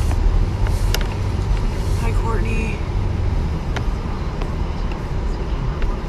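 A car engine hums low and steady, heard from inside the car.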